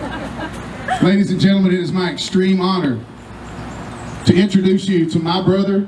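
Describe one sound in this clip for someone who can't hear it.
A man speaks clearly through a microphone, outdoors.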